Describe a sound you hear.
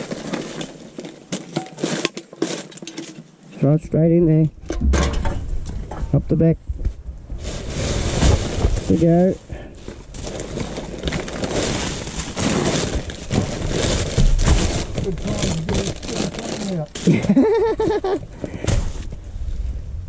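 Rubbish rustles and crackles as hands dig through it.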